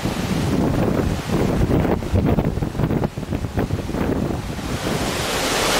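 Waves rush and churn against a ship's hull.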